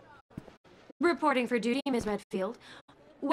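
A young woman speaks playfully and teasingly.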